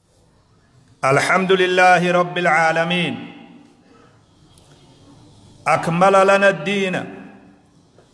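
A man chants loudly through a microphone in a tuneful, drawn-out voice, echoing in a reverberant room.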